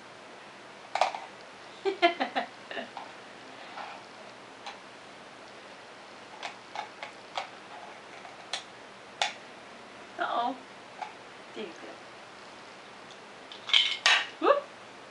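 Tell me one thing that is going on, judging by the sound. Plastic toy cups click and knock together.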